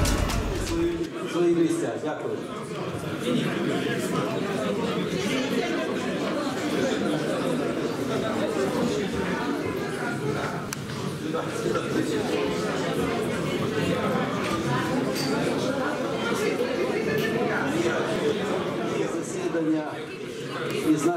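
A crowd of people talks at once in a large room.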